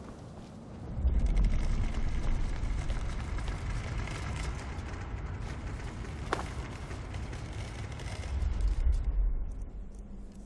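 A deep magical rumble swells, roars steadily and then fades.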